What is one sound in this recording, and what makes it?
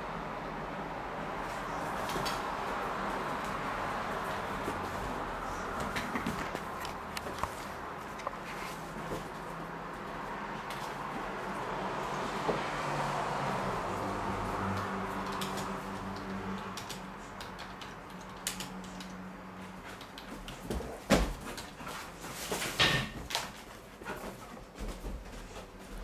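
A dog's claws click and tap on a wooden floor.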